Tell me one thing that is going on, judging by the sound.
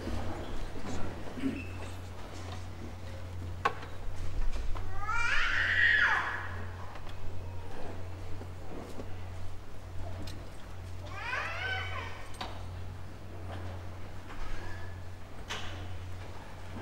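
A large crowd shuffles and murmurs softly in a large echoing hall.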